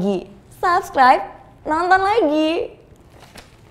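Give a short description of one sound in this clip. A young woman speaks brightly and playfully into a microphone.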